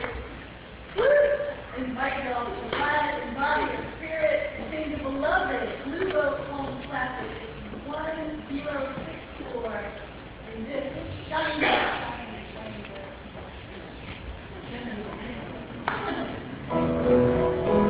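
A woman speaks through a microphone in an echoing hall.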